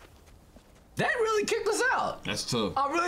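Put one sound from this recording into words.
A young man laughs and talks loudly and excitedly into a microphone.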